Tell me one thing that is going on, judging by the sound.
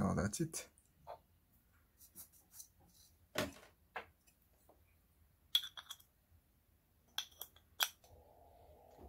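Small plastic parts click and knock together as they are handled.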